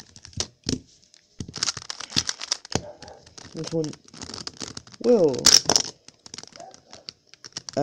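A plastic puzzle cube clicks and rattles as its layers are twisted.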